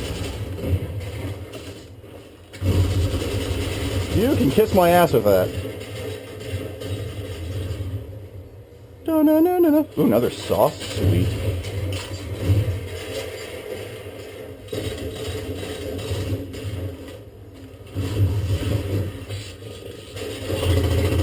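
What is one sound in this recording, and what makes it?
A video game plays loudly from a television.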